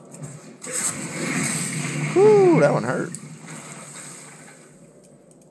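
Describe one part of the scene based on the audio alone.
A magic spell whooshes and rings out.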